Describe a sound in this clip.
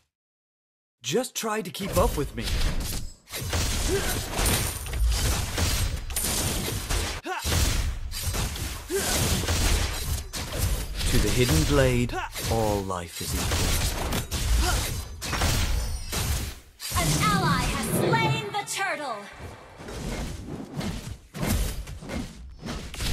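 Game sound effects of magic attacks and impacts crackle and boom.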